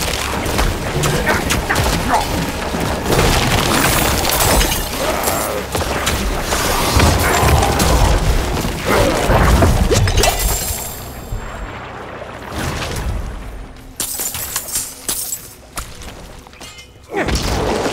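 Magic blasts and weapon hits crash rapidly in a fierce fight.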